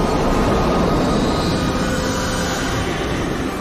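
A deep magical blast roars and crackles.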